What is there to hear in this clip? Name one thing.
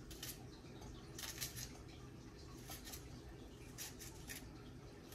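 A paring knife cuts through a vegetable held in the hand.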